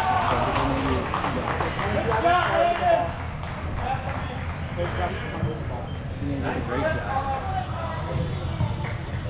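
Young girls shout and call out across a large echoing hall.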